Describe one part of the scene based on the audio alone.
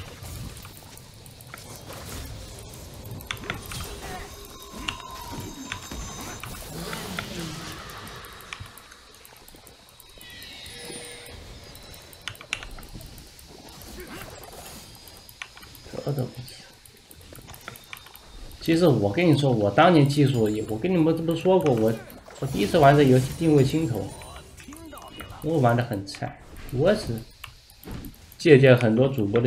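Fantasy battle effects whoosh, crackle and clash.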